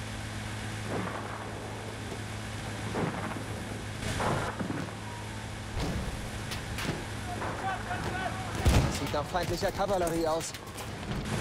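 Explosions thud in the distance.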